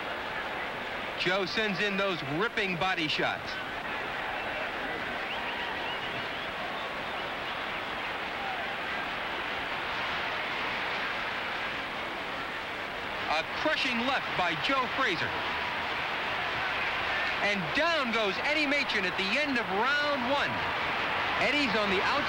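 A large crowd roars and cheers throughout.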